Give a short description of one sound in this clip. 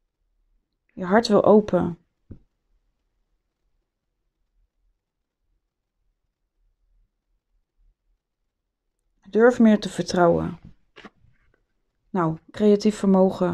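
A woman speaks calmly, close to the microphone.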